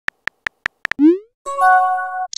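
A short whooshing send tone sounds.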